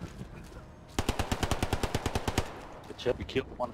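A submachine gun fires a rapid burst close by.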